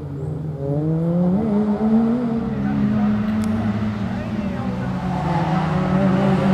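A small hatchback rally car's engine revs hard outdoors as it races through a slalom course.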